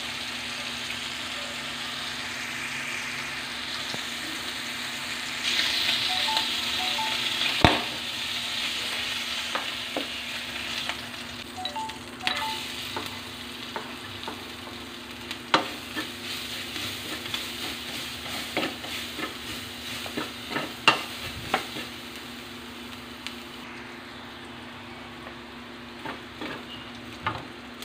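Meat sizzles and crackles in hot oil.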